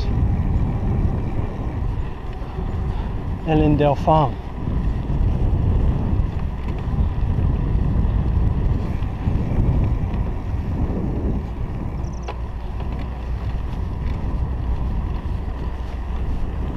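Wind buffets a microphone while riding a bicycle outdoors.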